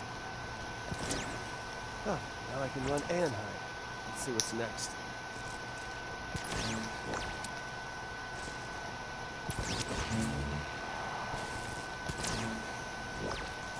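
A crackling energy burst whooshes past several times.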